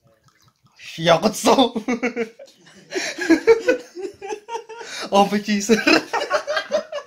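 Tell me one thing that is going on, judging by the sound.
A young man laughs heartily close by.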